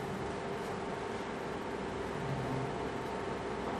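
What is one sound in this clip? Chalk taps and scratches on a board.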